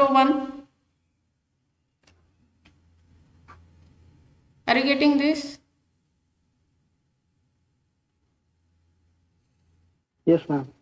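A woman speaks calmly into a close microphone, in short phrases.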